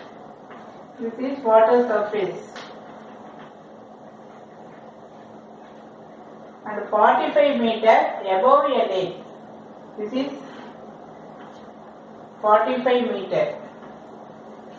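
A woman lectures at a steady pace, close to a microphone.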